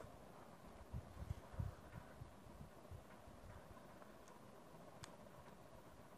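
Calculator keys click as they are pressed.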